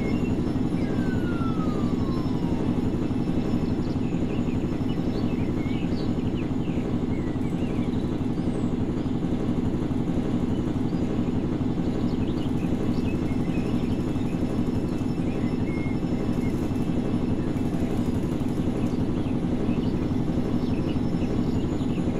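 A helicopter's rotor whirs steadily as it flies.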